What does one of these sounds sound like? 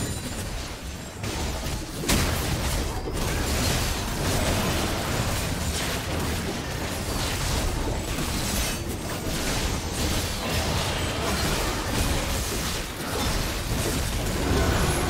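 Game spell effects crackle and whoosh in a busy fight.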